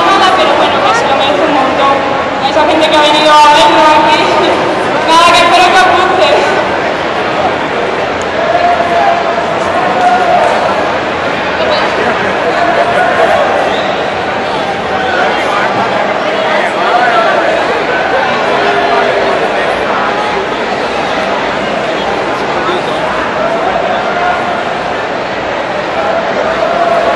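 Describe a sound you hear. A young man speaks through a microphone and loudspeakers.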